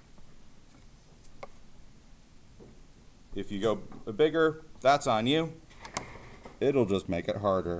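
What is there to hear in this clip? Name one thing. A wooden ruler slides and taps on paper.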